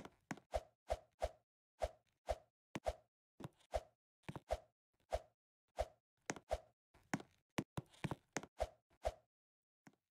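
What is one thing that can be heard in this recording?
A game character's footsteps land in quick, repeated thuds.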